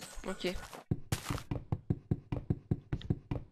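Quick, light knocks repeat as a block of wood is struck over and over.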